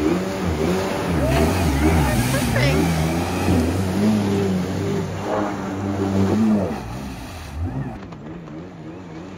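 Water sprays and hisses behind a personal watercraft.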